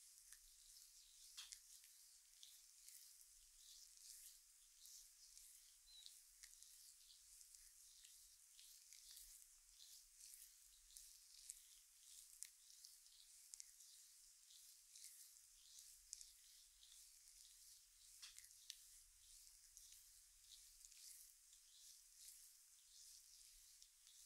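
Hands softly rub and knead bare skin up close.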